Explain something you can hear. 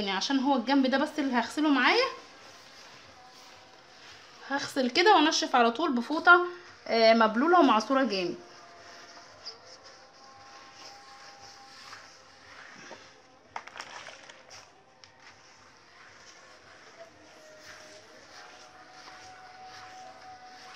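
A damp sponge rubs softly against a wall.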